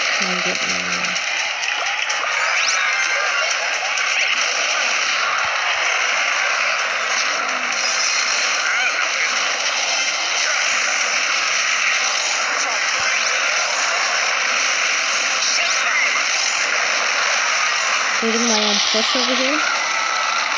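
A boy talks close to a microphone.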